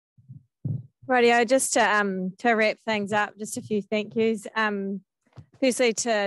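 A young woman speaks clearly into a microphone, close by.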